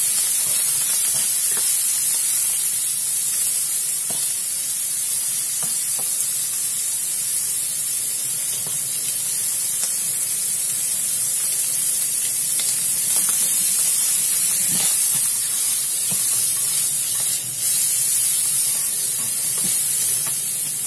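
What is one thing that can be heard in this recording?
Shrimp sizzle steadily in a hot pan.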